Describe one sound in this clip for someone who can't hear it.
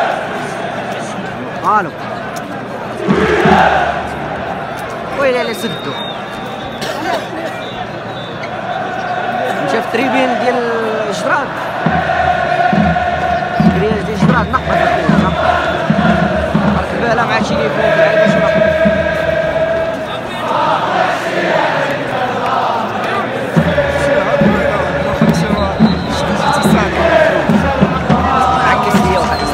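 A large stadium crowd sings and chants loudly in unison.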